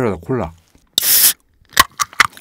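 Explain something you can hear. A soda can hisses open.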